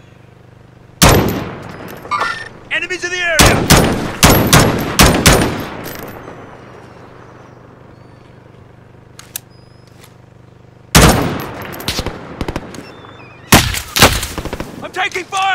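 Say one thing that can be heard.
A rifle fires in sharp bursts of shots.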